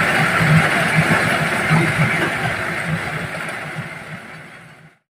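Grain pours out of a threshing machine with a steady hiss.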